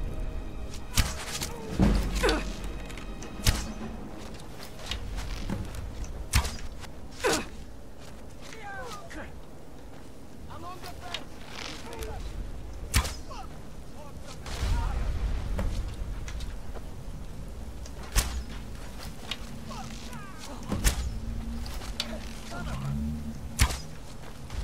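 A bow twangs as arrows are loosed.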